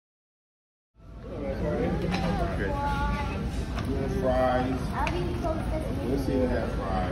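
Several people chatter in a busy room.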